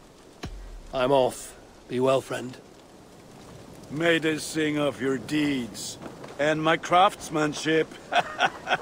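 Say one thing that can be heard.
A man speaks calmly and cheerfully, close by.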